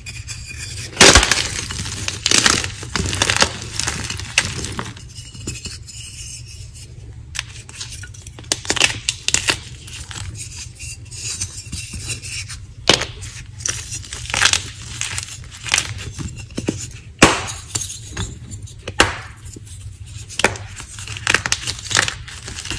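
Crumbs of chalk rustle and patter onto a pile of chalk pieces.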